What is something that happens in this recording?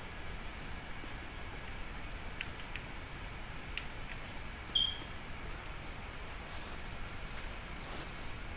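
Footsteps rustle through tall grass and brush.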